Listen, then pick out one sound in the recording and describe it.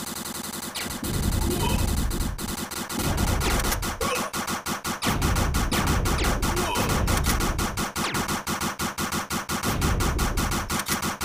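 Video game explosions boom with deep rumbles.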